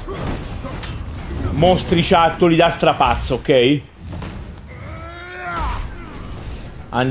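Heavy blows and energy blasts thud and crackle in a fight.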